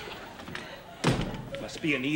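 A door slams shut.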